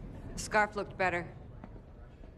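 A woman speaks tensely close by.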